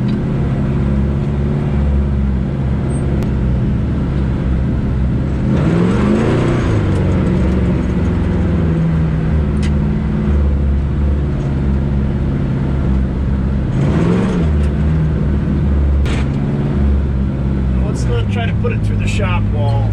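An old truck engine rumbles steadily from inside the cab.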